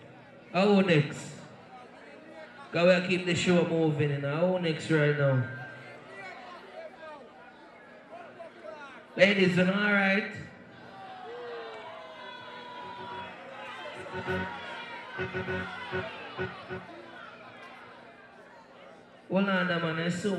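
A man shouts and chants loudly into a microphone over a loudspeaker.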